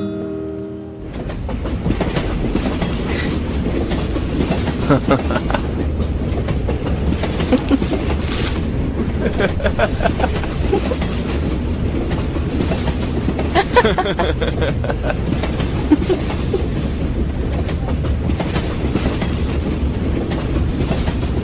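A train rumbles steadily along.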